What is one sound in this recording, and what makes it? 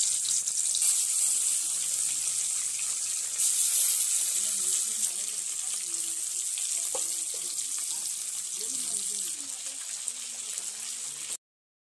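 Fish pieces sizzle as they fry in hot oil in a wok.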